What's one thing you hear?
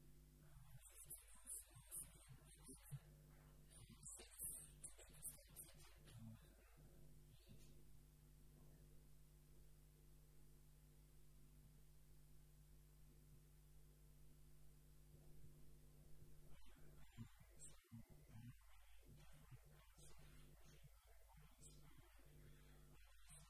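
A man speaks calmly into a microphone in a large echoing hall.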